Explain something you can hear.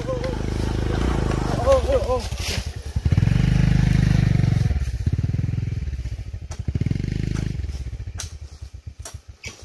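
A motorbike engine idles with a low throb, then sputters and stops.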